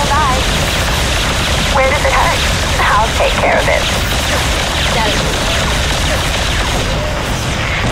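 Gunfire and explosions crackle in a battle.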